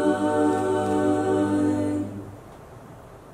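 A group of young men and women sing a held chord together through microphones.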